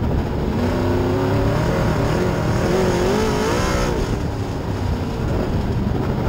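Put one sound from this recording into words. A race car engine roars loudly close by, its pitch rising and falling as it revs.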